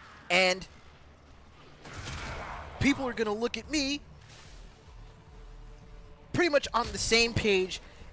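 A man speaks with animation through a close microphone.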